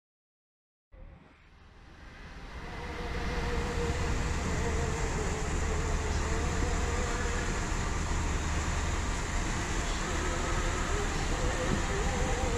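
Water rushes along a moving boat's hull.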